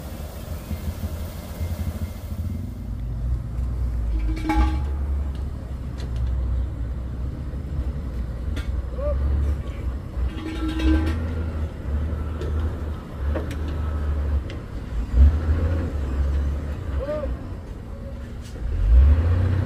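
A tow truck's engine rumbles steadily nearby.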